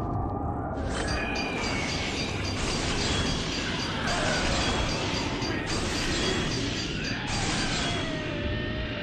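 Bright chiming tones ring out in quick bursts.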